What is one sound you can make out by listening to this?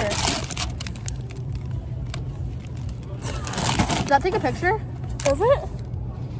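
A snack bag crinkles.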